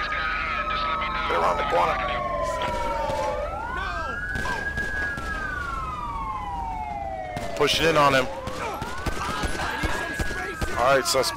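Police sirens wail, rising and falling, throughout.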